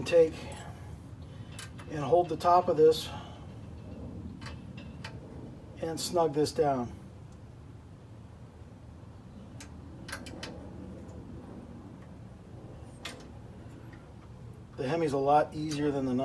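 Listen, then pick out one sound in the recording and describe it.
Small metal tools click and tap against an engine part.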